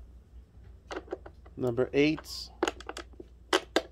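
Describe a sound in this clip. A hand handles a hard plastic and metal part with light clicks and knocks.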